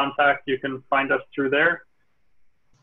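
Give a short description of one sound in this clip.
A man speaks clearly over an online call.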